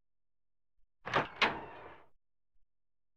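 A door latch clicks and a door creaks open.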